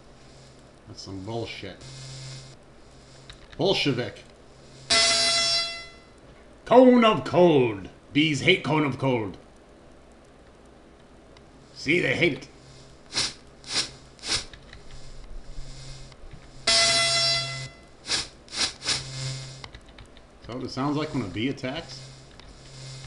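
Sound effects from a retro computer game play in short bursts.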